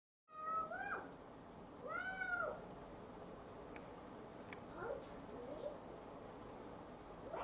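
A woman speaks with animation through a webcam microphone.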